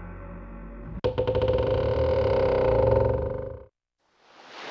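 A heavy wooden door creaks open with a low groan.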